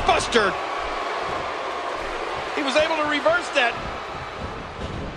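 A large crowd murmurs and cheers steadily in a big echoing arena.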